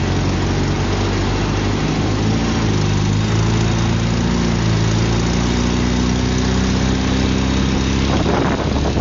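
An engine drones loudly at a steady pace, with its pitch shifting slightly.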